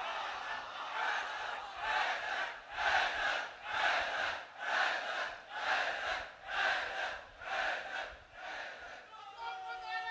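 A large crowd beats their chests in a steady rhythm.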